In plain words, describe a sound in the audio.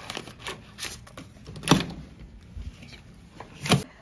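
A door's card lock clicks open.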